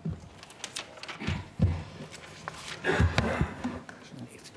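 A wooden lectern thumps and knocks as it is moved.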